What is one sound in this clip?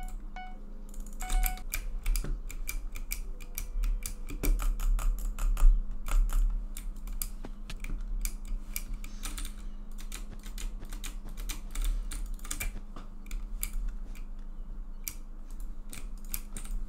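Blocks are placed with rapid, soft clicking taps.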